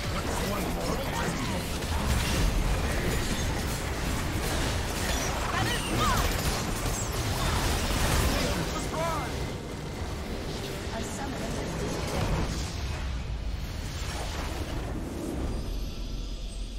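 Loud fighting sound effects crackle and clash in quick bursts.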